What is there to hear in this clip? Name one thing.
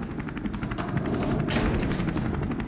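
A heavy metal door slams shut.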